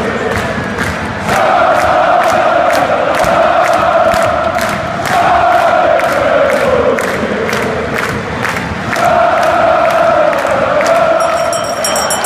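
Fans clap in a steady rhythm.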